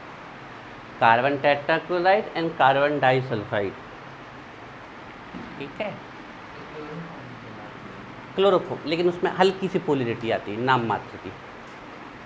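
A young man speaks calmly nearby, pausing between phrases.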